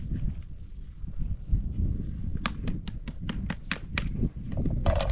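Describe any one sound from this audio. Metal dishes and lids clink and clatter.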